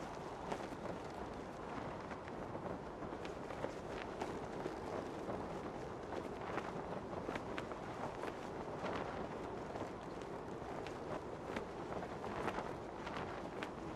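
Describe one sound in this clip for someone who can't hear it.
A parachute canopy flutters in the wind.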